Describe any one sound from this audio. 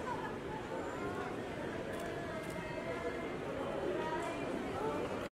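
Young women chat nearby.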